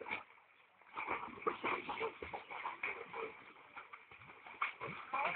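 Water splashes as a dog is lowered into a pool.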